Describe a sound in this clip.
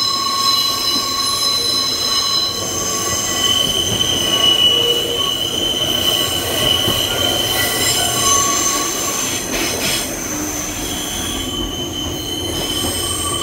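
Wind rushes past an open train doorway.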